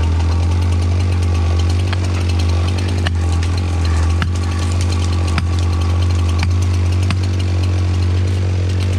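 A chainsaw idles with a steady low rumble.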